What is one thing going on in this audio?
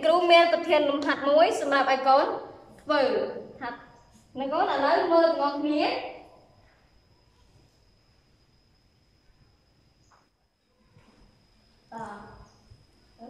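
A young woman speaks clearly and calmly, as if teaching, close by.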